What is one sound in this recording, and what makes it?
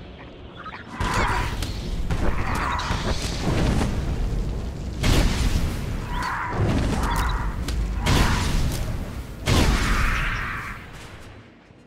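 Beasts screech and growl.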